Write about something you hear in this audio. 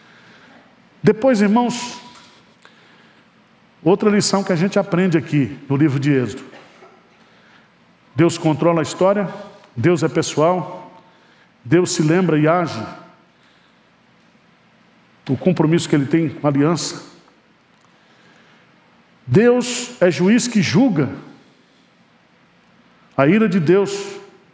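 A middle-aged man speaks slowly and earnestly into a microphone, with pauses between phrases.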